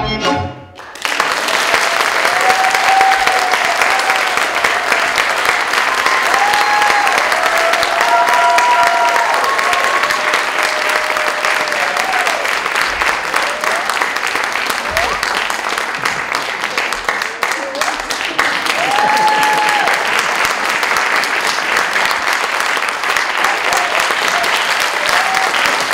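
A young woman sings with feeling in a large hall.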